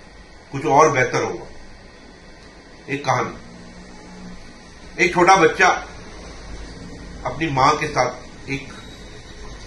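A middle-aged man speaks calmly into a close microphone, in short phrases with pauses.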